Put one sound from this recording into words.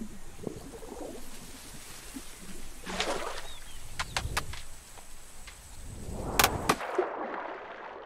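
A small fish flops and slaps against a hard surface.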